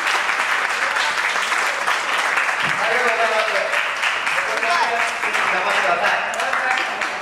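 Young women clap their hands rapidly.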